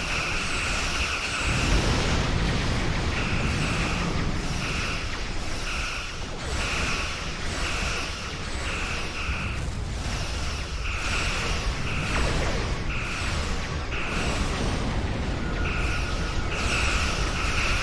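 Low rumbling explosions boom steadily.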